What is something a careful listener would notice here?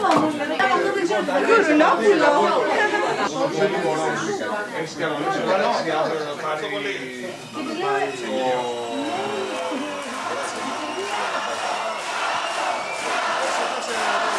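Several people chatter nearby.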